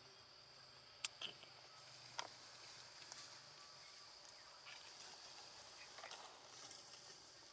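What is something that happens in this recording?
A small monkey's feet pad softly across stone.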